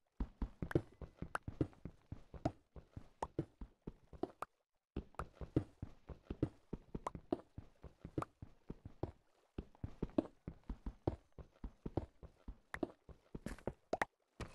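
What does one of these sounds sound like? A pickaxe chips rapidly at stone, with quick sharp knocks.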